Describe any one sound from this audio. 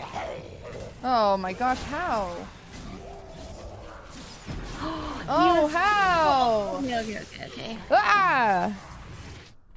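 A young woman shouts and squeals excitedly close to a microphone.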